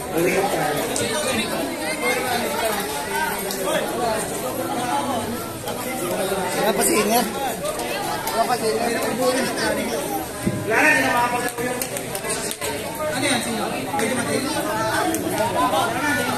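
A crowd of people chatters loudly in an echoing hall.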